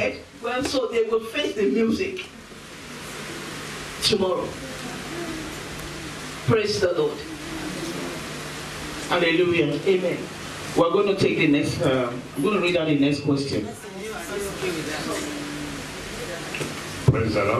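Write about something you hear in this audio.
A woman speaks with animation into a microphone, heard through loudspeakers in an echoing hall.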